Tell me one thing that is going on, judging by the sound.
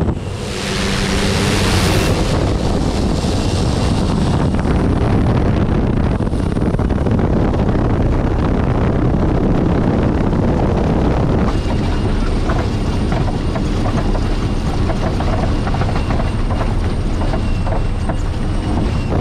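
A small plane's wheels rumble over a bumpy grass strip.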